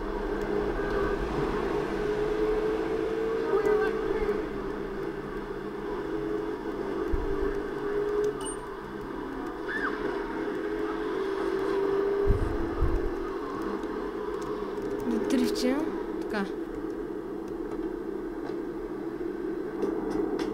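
A car engine hums steadily as a car drives through streets.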